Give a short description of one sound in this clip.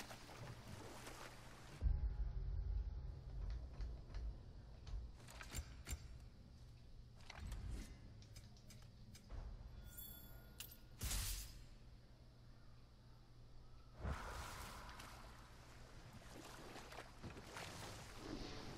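Oars splash and water laps against a small rowing boat.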